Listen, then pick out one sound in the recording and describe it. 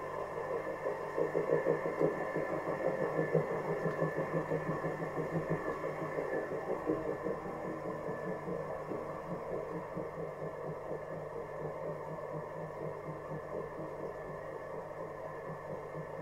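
A potter's wheel hums and whirs steadily.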